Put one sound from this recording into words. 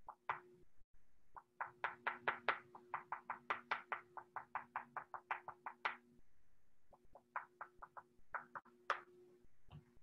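A pastel stick scratches across paper in quick, repeated strokes.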